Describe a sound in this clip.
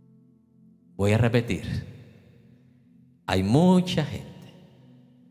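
A middle-aged man speaks with animation through a microphone in a reverberant hall.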